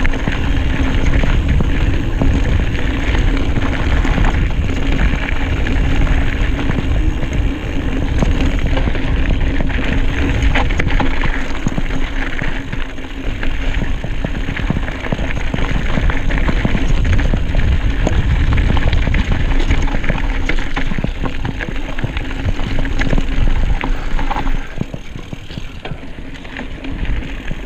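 Bicycle tyres rumble and crunch over a dirt trail.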